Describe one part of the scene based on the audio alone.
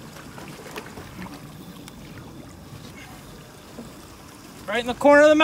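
A fish splashes in the water beside a boat as it is released by hand.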